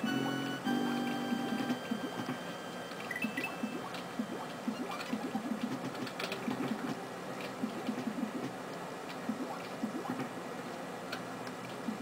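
Video game music plays with a bouncy beat.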